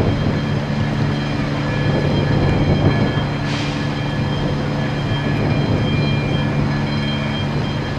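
A large fire roars steadily in the distance.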